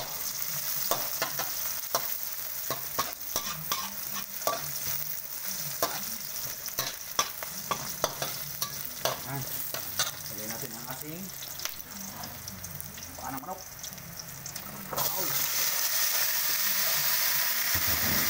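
Oil sizzles steadily in a hot pan.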